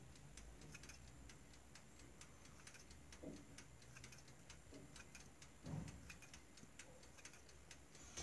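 Scissors snip softly through dough.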